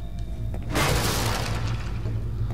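Wooden planks smash and splinter loudly.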